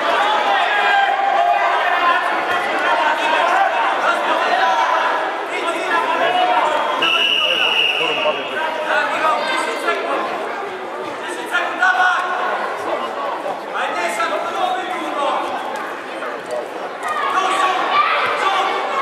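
A crowd of children and adults chatters and calls out in a large echoing hall.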